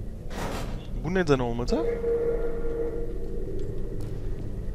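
A portal opens with a warbling electronic hum.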